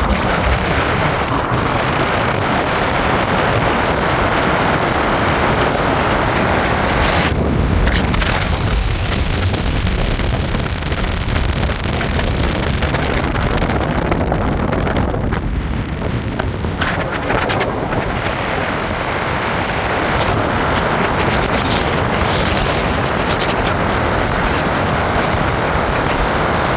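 Tyres roll on asphalt, heard from inside a car.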